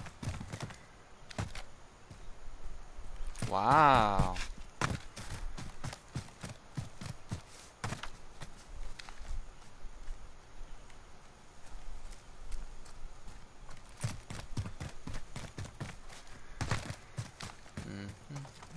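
Footsteps crunch over snow and dry grass at a steady walking pace.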